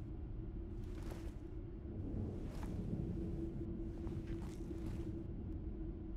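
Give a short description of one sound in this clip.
Footsteps fall slowly on a hard floor.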